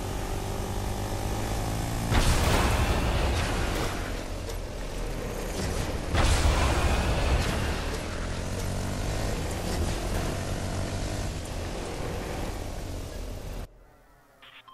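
A quad bike engine revs and roars loudly.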